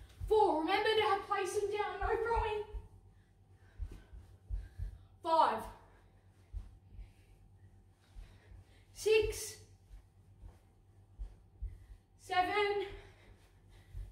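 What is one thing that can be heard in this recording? A child speaks with animation close by.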